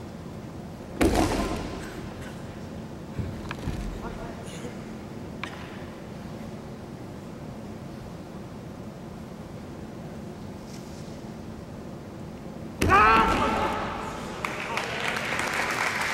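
Two men shout loudly in a large echoing hall.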